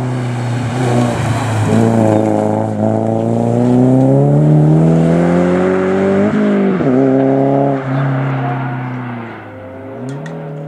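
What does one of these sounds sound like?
A rally car engine revs hard and roars past, then fades into the distance.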